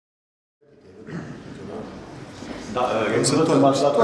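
An elderly man speaks to an audience.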